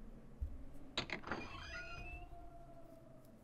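A glass door creaks open.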